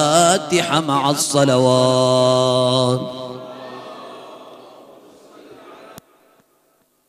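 A man chants loudly into a microphone in an echoing hall, his voice fading away.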